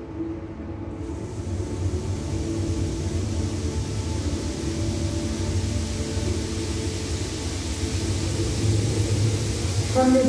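A curtain of water pours down and splashes steadily.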